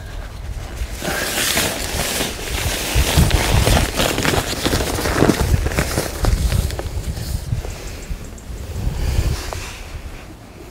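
Heavy fabric rustles and flaps.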